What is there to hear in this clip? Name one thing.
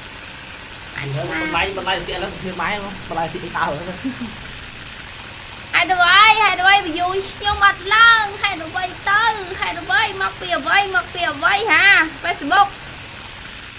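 A young woman speaks with animation through a microphone.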